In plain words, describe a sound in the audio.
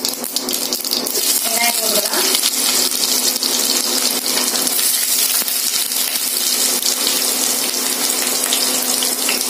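Sliced onions drop into hot oil and sizzle loudly.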